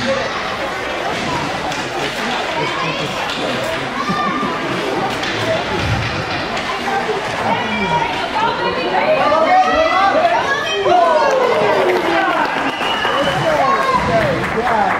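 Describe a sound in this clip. Young children shout and call out in an echoing ice rink.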